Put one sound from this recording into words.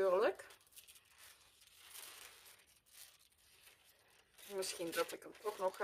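A sheet of paper rustles as it is handled.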